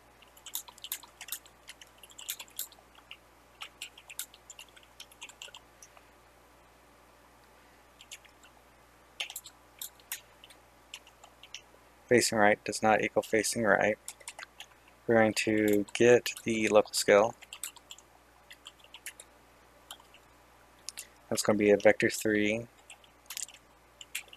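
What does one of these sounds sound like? Keys clatter on a computer keyboard in quick bursts.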